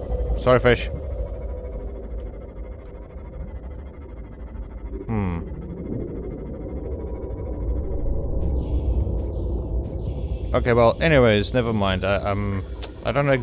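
A vehicle's motor hums low and steady underwater.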